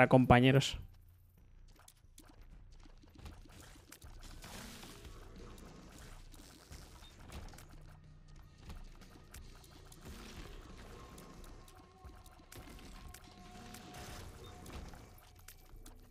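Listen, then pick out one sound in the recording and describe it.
Video game sound effects pop and blast rapidly.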